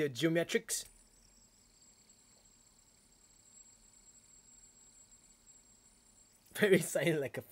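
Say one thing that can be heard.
A fidget spinner whirs softly as it spins.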